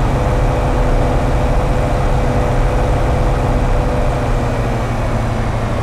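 A truck engine rumbles steadily as it drives along.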